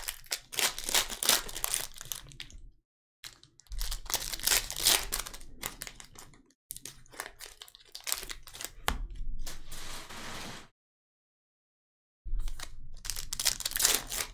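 Foil card packs crinkle and rustle.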